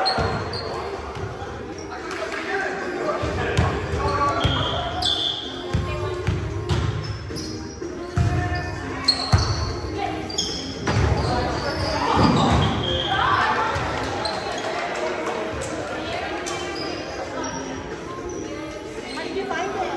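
Many people talk and call out in a large echoing hall.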